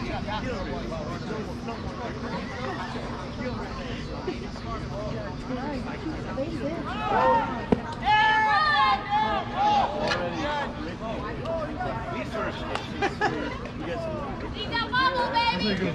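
People chatter in the background.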